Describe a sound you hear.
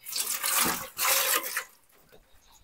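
Water splashes in a basin.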